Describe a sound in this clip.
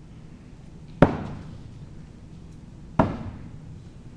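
Axes thud into a wooden target.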